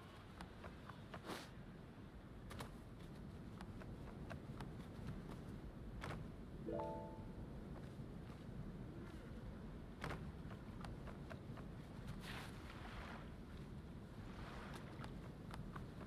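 Sea waves wash gently.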